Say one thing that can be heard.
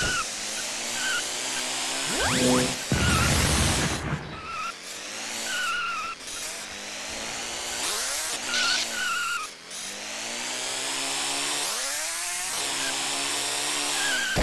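A toy car's electric motor whines steadily, rising and falling in pitch as it speeds up and slows.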